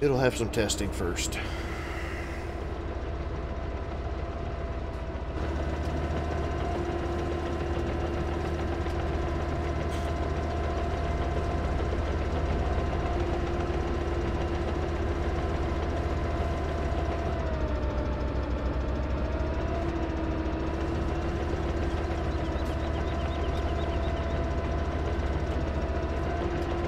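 A diesel excavator engine hums steadily, its pitch dipping briefly then recovering.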